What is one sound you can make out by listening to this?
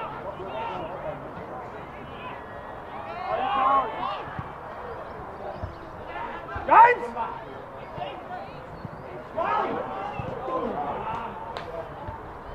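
Men shout loudly to each other outdoors across an open field.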